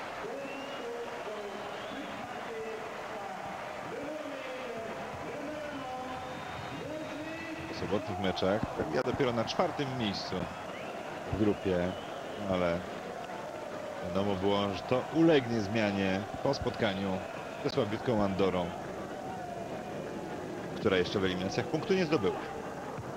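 A large crowd chants and roars in a stadium.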